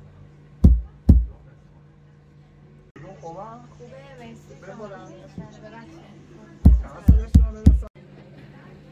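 A wooden block thumps heavily on cloth.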